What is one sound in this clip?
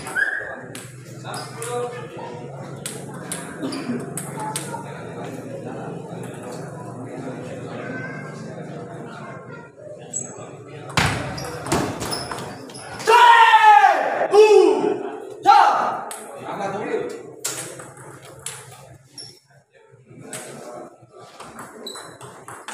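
A table tennis ball clicks back and forth off paddles and the table in quick rallies.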